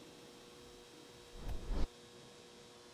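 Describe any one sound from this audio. Spectators clap briefly.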